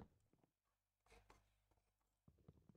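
A block of wood breaks with a crunch.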